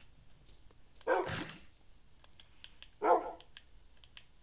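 A wolf yelps in short bursts.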